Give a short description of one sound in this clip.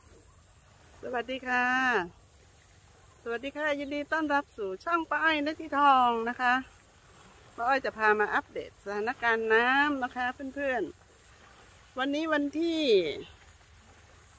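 A middle-aged woman talks calmly and close to a microphone.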